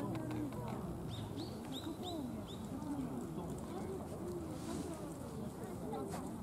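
Several people chat in the open air.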